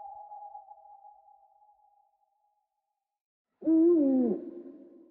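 An owl hoots in long, low calls.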